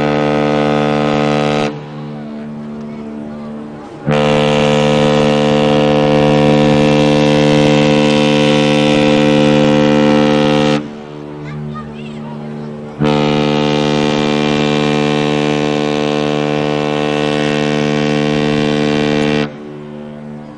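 A large ship's horn blasts loudly in long, deep blows.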